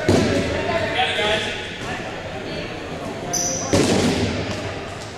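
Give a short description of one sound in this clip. A crowd of young people shouts and chatters in a large echoing hall.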